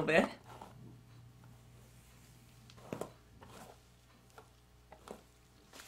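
A hairbrush brushes through hair with soft strokes.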